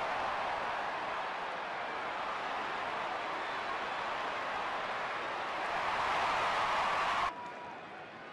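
A large crowd cheers loudly in a stadium.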